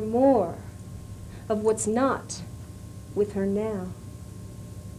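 A woman sings nearby in short phrases.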